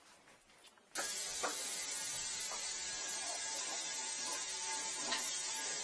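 A machine runs with a steady hiss.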